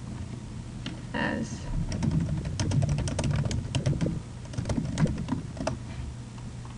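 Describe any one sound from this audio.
Computer keys click quickly as someone types.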